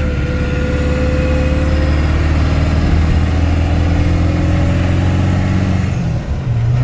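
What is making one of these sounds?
Tyres roll and roar on a concrete road.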